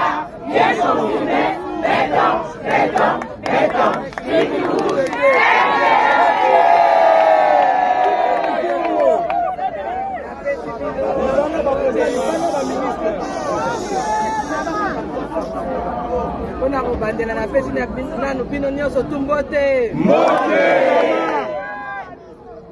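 Women nearby cheer and call out.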